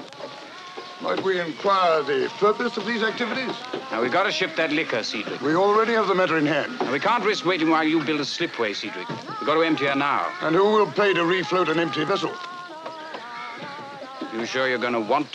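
An older man talks nearby with animation.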